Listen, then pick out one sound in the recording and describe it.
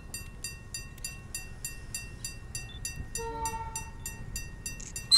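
A train rumbles as it approaches.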